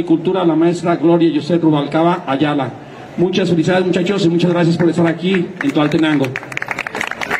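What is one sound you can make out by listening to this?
A man speaks loudly through a microphone and loudspeakers, reading out.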